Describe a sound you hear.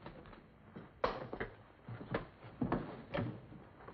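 Heavy footsteps thud on a wooden floor as men scuffle.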